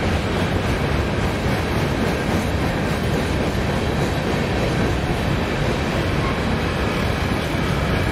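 A freight train rumbles steadily past on the tracks close by.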